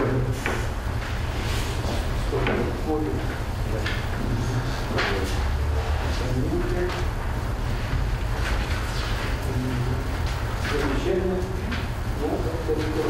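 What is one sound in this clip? An elderly man reads aloud calmly, close by.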